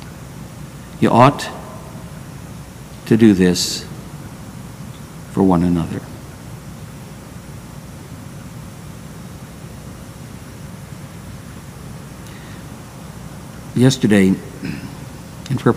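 An elderly man speaks into a microphone in short, spaced bursts.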